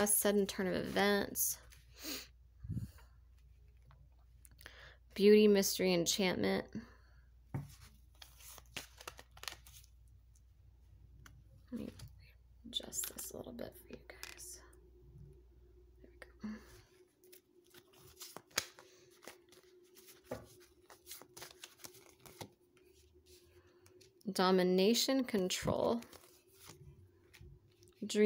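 Playing cards rustle and flick as they are shuffled and laid down.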